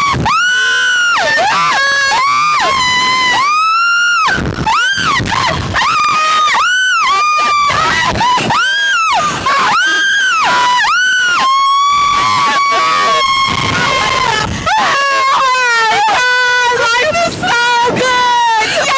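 Two young women scream loudly and continuously close by.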